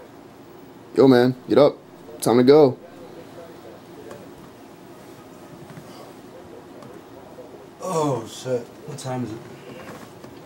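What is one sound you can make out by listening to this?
A young man calls out loudly nearby.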